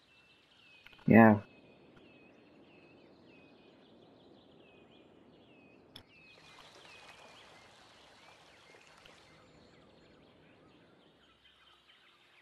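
Water gushes and splashes steadily from an outlet into a stream.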